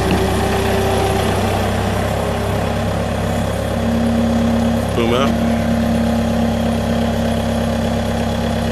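A diesel engine rumbles steadily up close.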